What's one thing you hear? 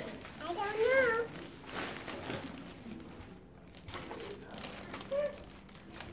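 A plastic bag crinkles as it is lifted.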